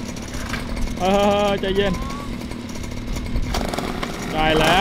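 A small motorbike engine revs in short, high bursts.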